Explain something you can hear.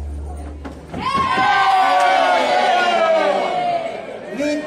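A man lets out a long, loud whoop that slowly falls in pitch.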